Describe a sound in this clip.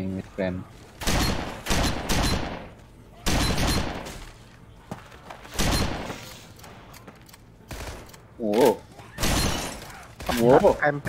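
Shotgun blasts boom loudly, each one echoing in a room.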